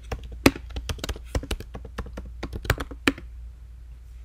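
Keys clack rapidly on a computer keyboard.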